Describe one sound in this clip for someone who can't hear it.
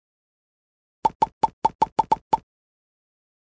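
Quick game pops and clicks tick in a rapid run.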